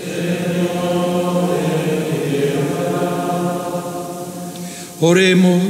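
An elderly man chants in a slow, steady sung voice through a microphone, echoing in a large hall.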